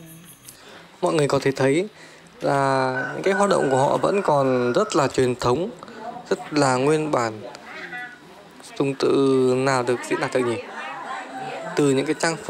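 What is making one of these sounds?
Several women talk loudly and with animation close by.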